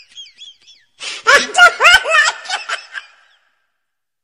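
A man wails and cries close by.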